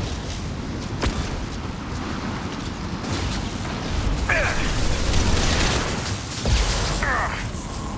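Electric crackling zaps and hums.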